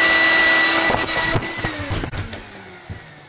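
A hard case knocks over and thuds onto the floor.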